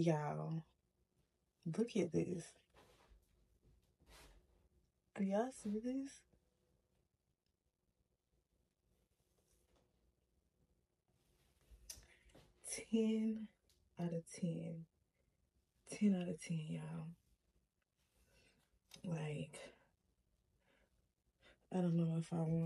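A young woman talks casually and close up, in short bursts with pauses.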